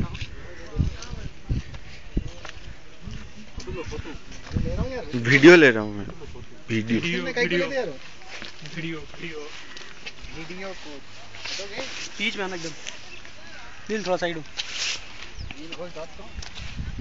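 Young men talk and call out close by.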